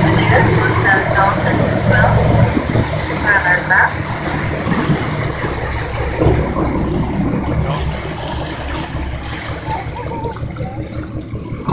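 Water splashes and churns close by.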